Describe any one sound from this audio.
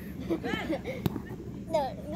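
A boy kicks a football with a dull thud.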